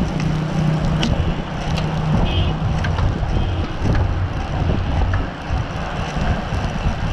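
Bicycle gears click now and then.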